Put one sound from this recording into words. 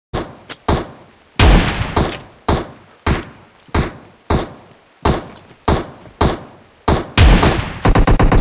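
A shotgun fires loud booming shots again and again.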